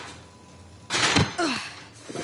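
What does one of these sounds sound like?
Shoes land with a thud on pavement.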